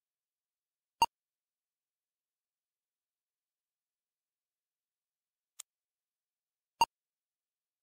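A short electronic click sounds a few times as buttons are tapped.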